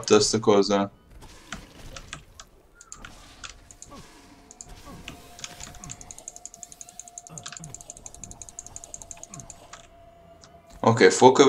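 Quick hits and clicks of combat sound effects patter.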